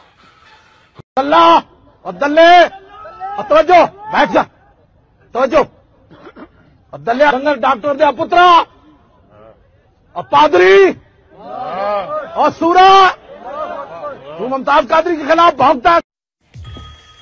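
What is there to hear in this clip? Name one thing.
A young man speaks with animation into a microphone.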